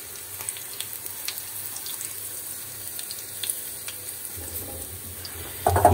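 Vegetables sizzle and crackle in a hot pan.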